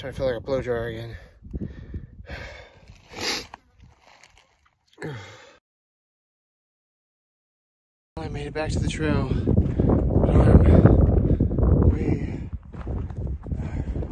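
A young man talks into a close microphone, out of breath.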